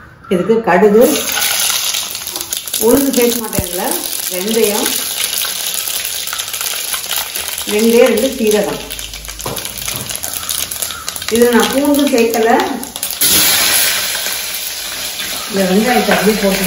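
Hot oil sizzles in a pot.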